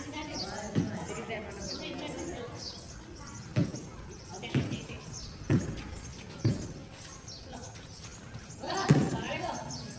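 A basketball bounces on hard ground with sharp thuds.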